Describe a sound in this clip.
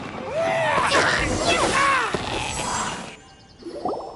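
A magical energy blast whooshes and crackles.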